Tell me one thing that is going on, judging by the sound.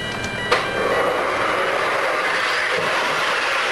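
A car approaches with a rising rush.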